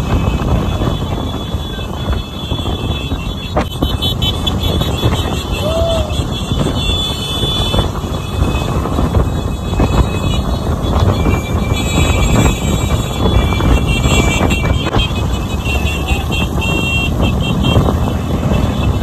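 Many small motorcycles ride together in a group, their engines buzzing.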